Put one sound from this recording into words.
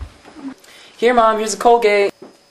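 A young man sings out loudly in a high voice.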